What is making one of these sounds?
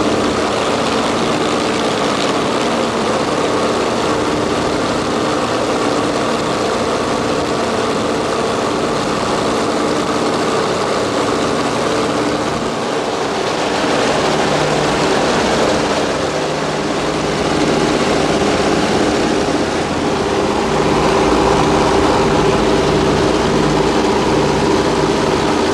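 A propeller plane's engine drones loudly and steadily close by.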